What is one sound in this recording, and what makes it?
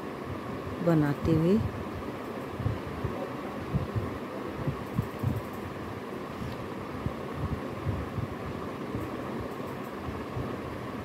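Knitting needles click and tap softly against each other.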